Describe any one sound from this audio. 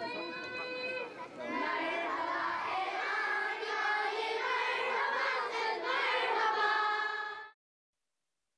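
A crowd of children sings together outdoors.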